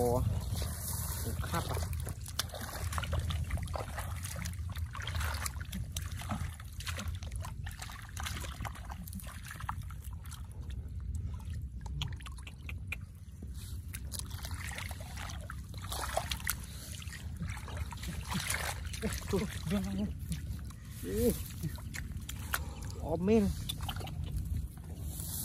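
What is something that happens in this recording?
Water splashes and sloshes as hands dig in shallow mud.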